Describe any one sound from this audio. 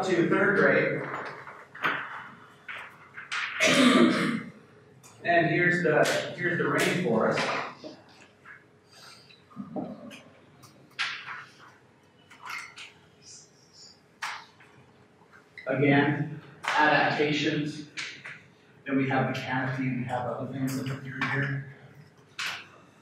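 A man speaks to an audience in an echoing room, pausing between phrases.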